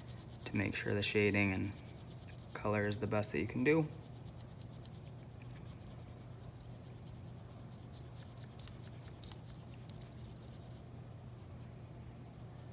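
A fingertip rubs softly across paper.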